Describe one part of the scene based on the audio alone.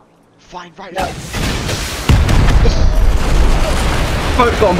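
A rocket explodes with a deep boom.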